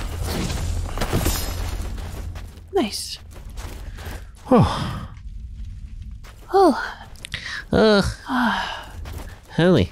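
Heavy footsteps crunch through snow.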